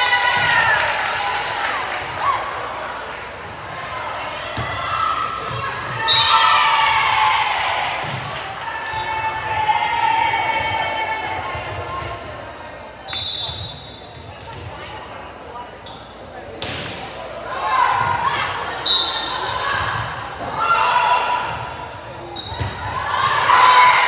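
A volleyball is struck with sharp slaps.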